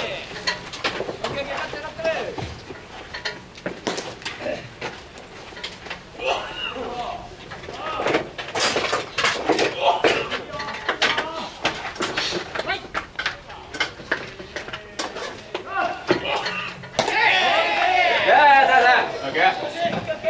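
Young men shout and call out across an open field.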